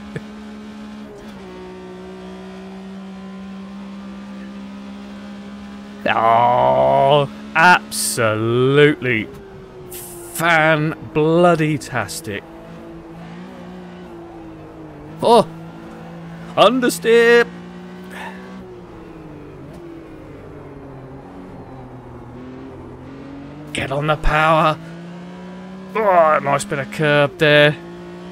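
A racing car engine drones steadily, rising and falling in pitch.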